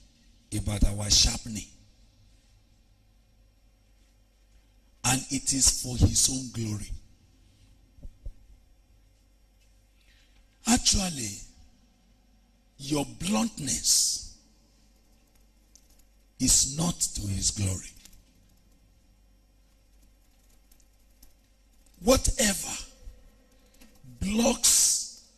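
A man preaches forcefully into a microphone in short bursts with pauses between.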